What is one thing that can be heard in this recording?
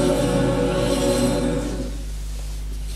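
A choir sings in an echoing hall, with the final chord fading out.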